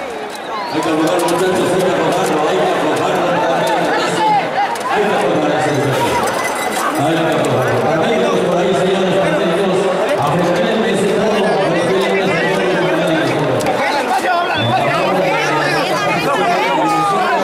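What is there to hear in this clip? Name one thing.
A crowd of men talks and calls out excitedly close by.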